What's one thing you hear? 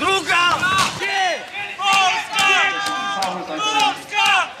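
A man shouts excitedly nearby.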